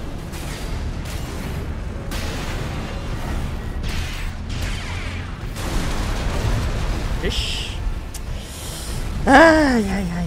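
Explosions and heavy gunfire boom from a game.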